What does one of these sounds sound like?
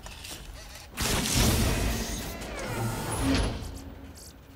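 A heavy metal chest creaks and clanks open.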